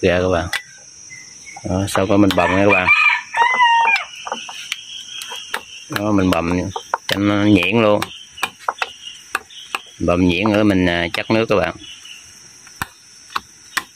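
A metal spoon clinks and scrapes against a bowl.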